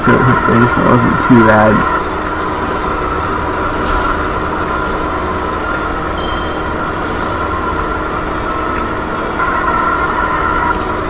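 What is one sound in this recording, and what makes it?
A small engine hums steadily as a kart races along.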